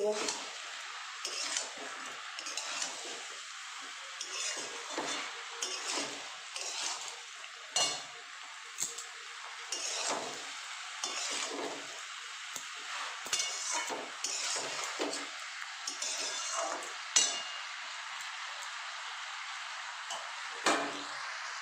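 Vegetables sizzle in oil in a wok.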